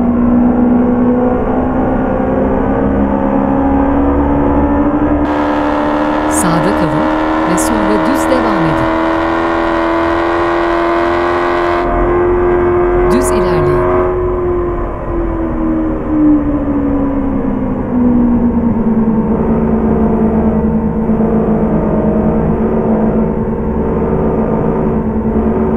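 A car engine hums steadily at speed, its pitch rising slightly and then dropping.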